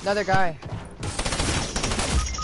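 A burst of gunfire and shattering sounds out loudly.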